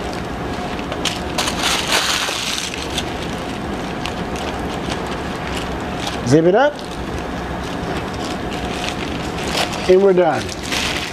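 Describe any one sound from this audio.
Plastic wrap crinkles and rustles as hands fold it.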